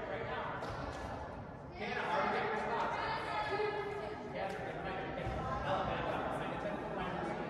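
Spectators cheer and shout in a large echoing gym.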